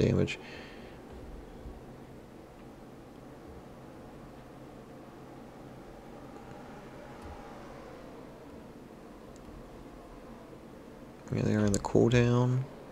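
Race car engines drone steadily in a pack.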